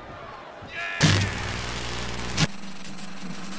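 Loud television static hisses.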